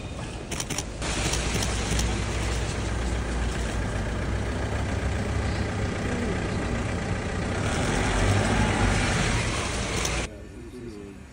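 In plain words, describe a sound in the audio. A car engine rumbles as a vehicle drives slowly past.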